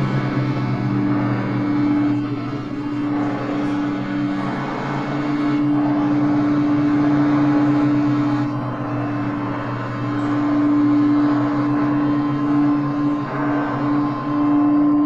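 Electronic synthesizer tones hum and buzz steadily.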